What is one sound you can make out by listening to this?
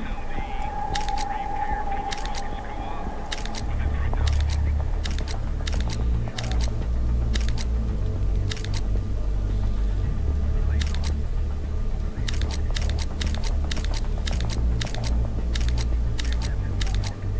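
Menu selection clicks sound sharply now and then.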